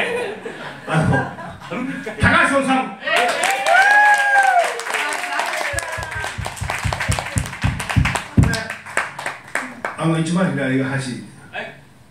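A group of men and women laugh loudly together.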